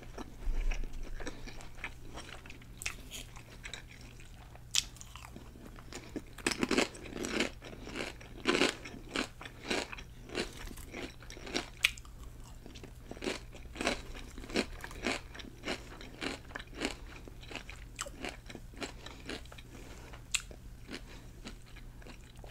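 A woman chews food loudly and wetly close to a microphone.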